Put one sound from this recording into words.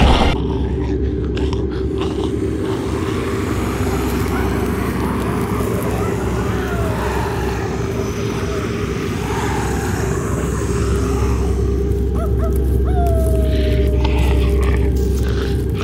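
A young man groans in pain close by.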